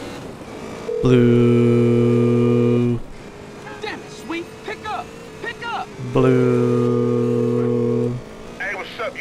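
A phone dialling tone hums twice in long steady beeps.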